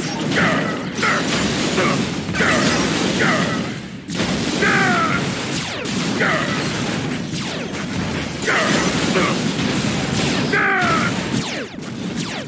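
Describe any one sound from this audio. A rocket thruster roars steadily.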